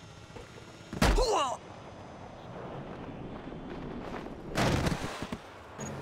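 A web line shoots out with a sharp whoosh.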